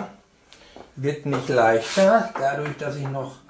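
An older man speaks calmly nearby.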